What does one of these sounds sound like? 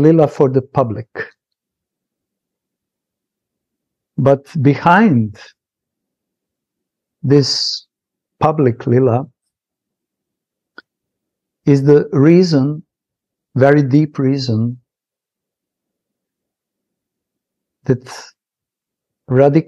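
A middle-aged man speaks with animation over an online call, pausing often.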